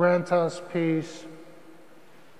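A middle-aged man sings a short phrase into a microphone.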